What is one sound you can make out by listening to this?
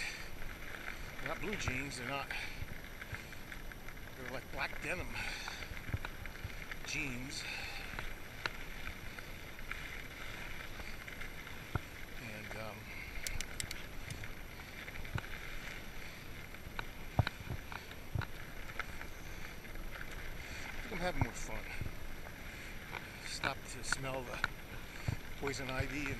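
Bicycle tyres crunch steadily over a dirt trail.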